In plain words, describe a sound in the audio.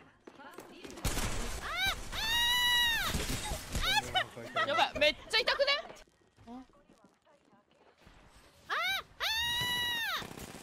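A young woman speaks excitedly through a microphone.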